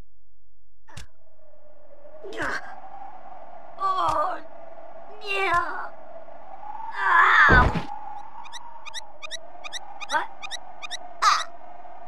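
Cartoonish game sound effects pop, squeak and chirp in short bursts.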